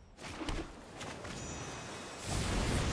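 A card game's playing card lands with a soft whoosh.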